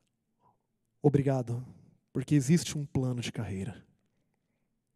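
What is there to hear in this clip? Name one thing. A man speaks calmly and slowly into a microphone.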